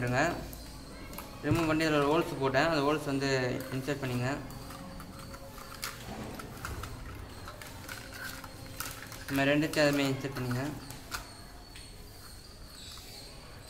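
Small plastic parts click and rustle as hands handle them.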